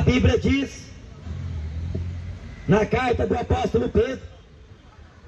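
A man speaks through a microphone and loudspeaker outdoors, in short bursts.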